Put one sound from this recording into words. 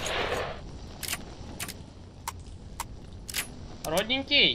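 Metallic clicks ring out as a rifle is handled.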